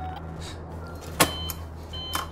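A button clicks as it is pressed.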